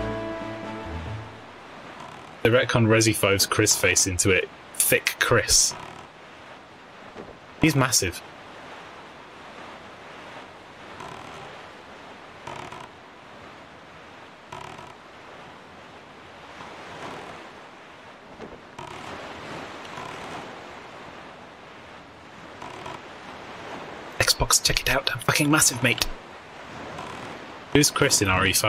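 A small sailboat splashes steadily through choppy water.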